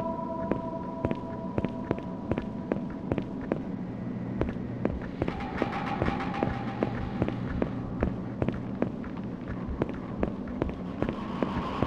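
Quick footsteps run on hard pavement.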